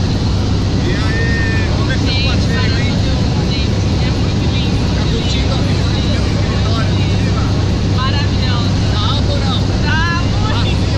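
A young woman talks excitedly and up close over loud engine noise.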